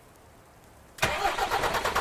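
A truck engine starts up and idles with a rattling rumble.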